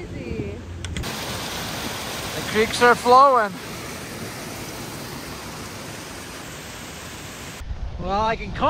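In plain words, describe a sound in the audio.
A stream of meltwater gurgles and rushes nearby.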